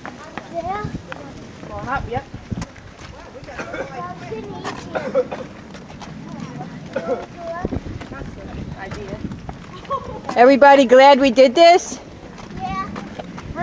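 Adults talk nearby outdoors, men and women chatting casually.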